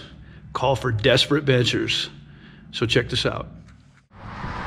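A man talks animatedly close to the microphone.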